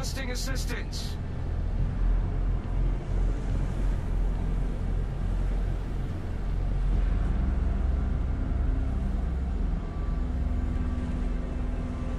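Water rushes and splashes against a ship's hull.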